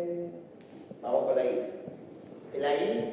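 A man speaks to a small group.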